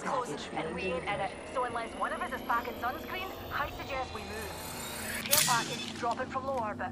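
A healing device whirs and hisses.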